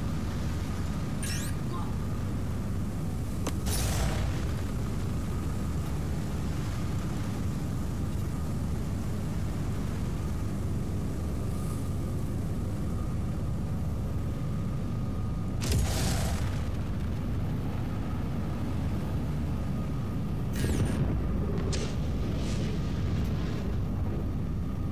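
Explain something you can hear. Strong wind roars steadily outdoors in a storm.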